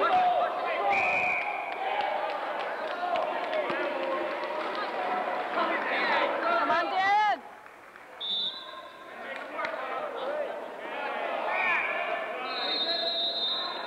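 A referee blows a whistle in short blasts.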